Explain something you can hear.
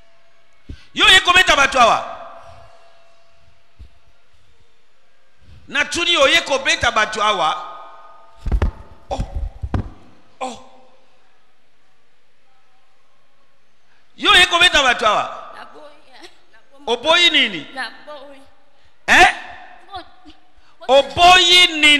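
A young woman speaks loudly and with emotion into a microphone, in short bursts with pauses.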